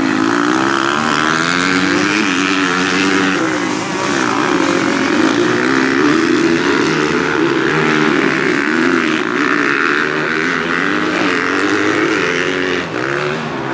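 Motorcycle engines whine and rev loudly, rising and falling in pitch as dirt bikes race past.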